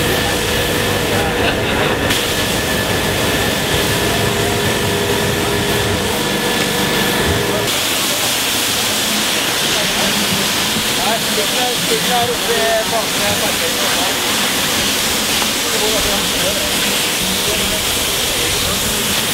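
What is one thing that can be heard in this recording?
A pressure washer sprays water in a loud steady hiss.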